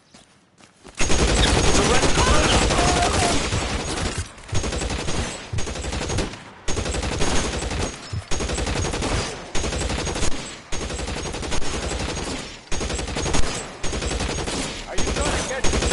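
Rapid gunfire bursts loudly and repeatedly.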